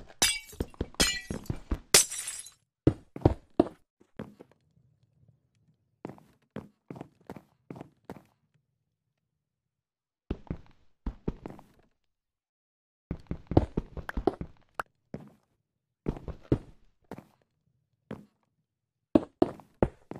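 Glass panes clink into place.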